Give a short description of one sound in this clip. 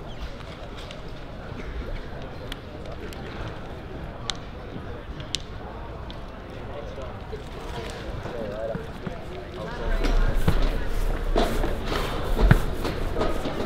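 Young men chat and call out outdoors.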